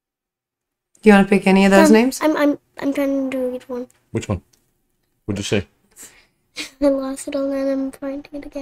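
A young girl talks in a high voice close by.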